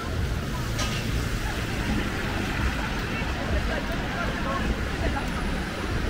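A car drives past on the wet road with hissing tyres.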